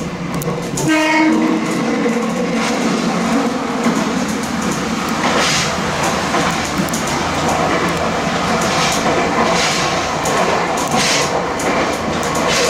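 A train's roar echoes and booms inside a tunnel.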